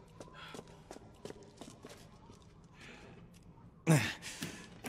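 Footsteps knock softly on a wooden floor.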